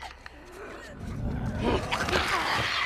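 Two people scuffle in a close struggle.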